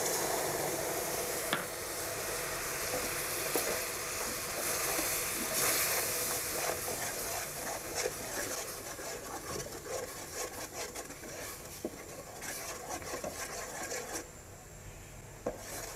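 Sauce bubbles and sizzles steadily in a pot.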